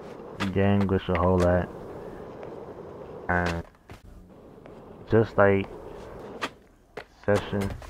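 Skateboard wheels roll over concrete.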